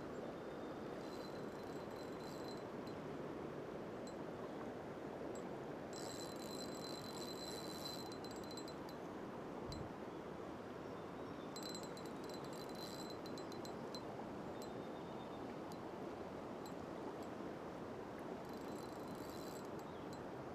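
A fishing reel whirs in short bursts.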